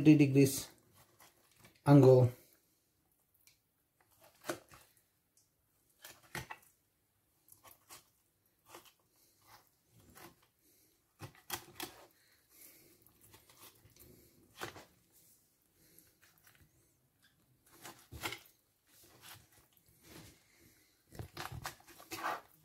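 A knife slices and scrapes through raw fish against a cutting board.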